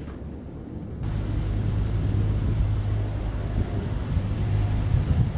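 A panda crunches and chews bamboo leaves close by.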